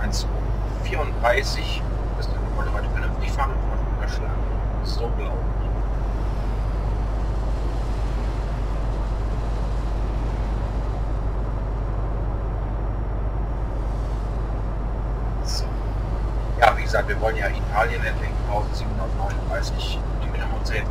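Tyres roll on a road with a steady rushing noise.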